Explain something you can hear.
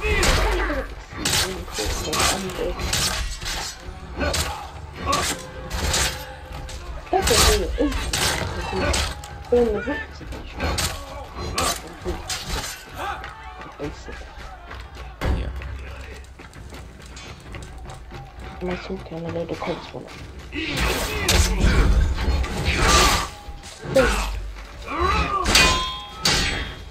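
Warriors shout and grunt in battle.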